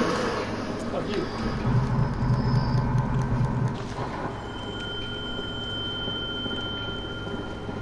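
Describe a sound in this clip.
Footsteps climb stone steps.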